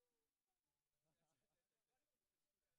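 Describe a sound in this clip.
Several young men laugh together.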